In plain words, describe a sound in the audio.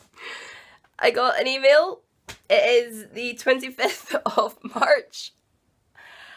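A young woman talks excitedly close to the microphone.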